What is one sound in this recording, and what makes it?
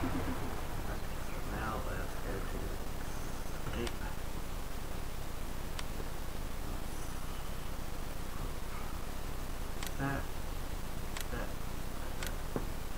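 A man talks quietly into a close microphone.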